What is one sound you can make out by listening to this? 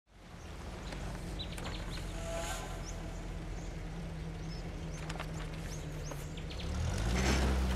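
An engine idles with a low, steady rumble and revs up near the end.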